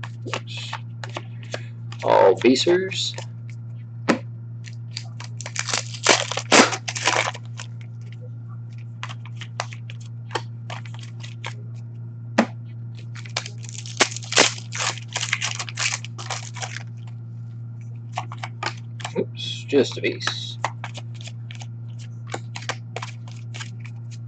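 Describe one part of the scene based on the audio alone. Cards rustle and flick as hands shuffle through them.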